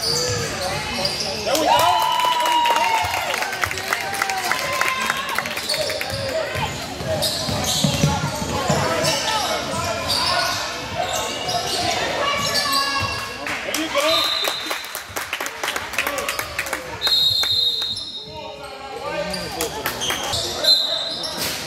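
Spectators near the court chatter and shout in a large echoing gym.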